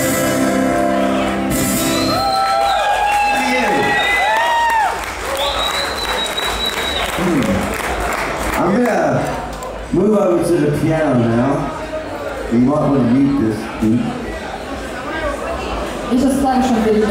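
A man sings into a microphone over loudspeakers, echoing in a large room.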